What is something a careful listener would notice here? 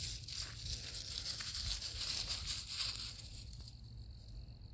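A small dog rustles through dry leaves.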